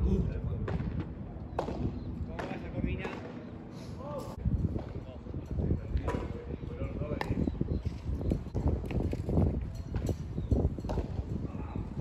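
Padel rackets pop against a ball in a rally.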